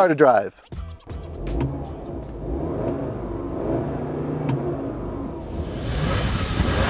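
A car engine hums and revs inside the cabin.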